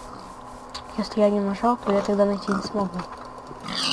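A pig grunts nearby.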